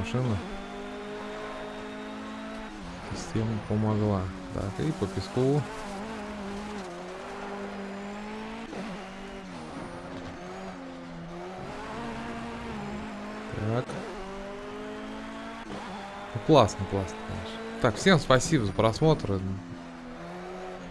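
A racing car engine drones steadily, its pitch rising and falling as it speeds up and slows.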